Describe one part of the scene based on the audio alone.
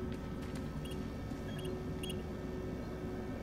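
A keypad beeps softly a few times.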